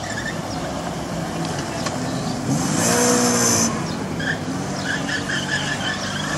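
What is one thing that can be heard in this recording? A small car engine revs hard as the car speeds past.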